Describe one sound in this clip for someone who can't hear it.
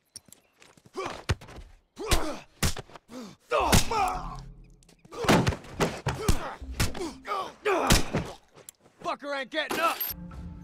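Heavy blows thud during a close struggle.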